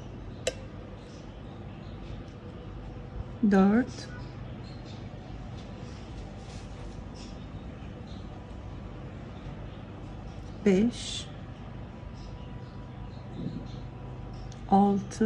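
A crochet hook softly rubs and clicks through yarn.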